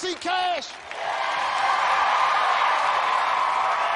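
An audience cheers and applauds loudly.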